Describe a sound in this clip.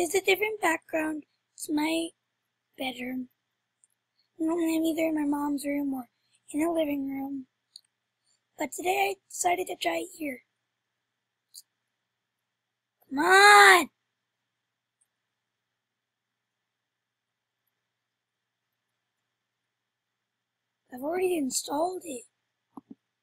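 A boy talks close to a computer microphone, in short bursts.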